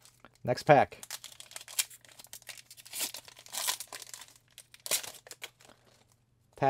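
A foil wrapper crinkles and tears as it is pulled open.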